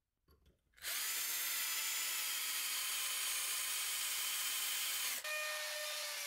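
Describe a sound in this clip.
A power drill whirs steadily as it bores into metal.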